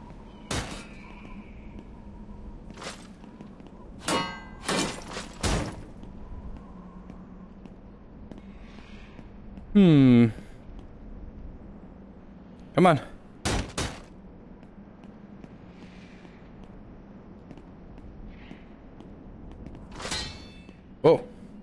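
Metal weapons clang sharply against a shield, again and again.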